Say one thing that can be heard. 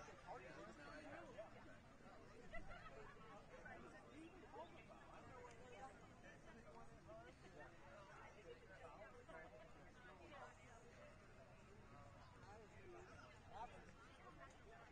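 A small crowd of men and women chat casually nearby.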